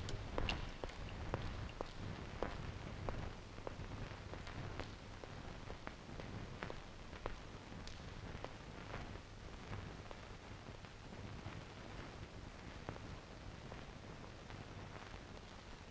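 Footsteps tread slowly on stone stairs.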